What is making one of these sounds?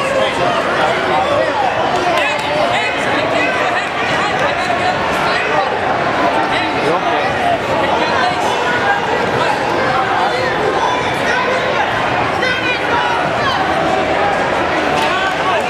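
Children shout and call out across the hall.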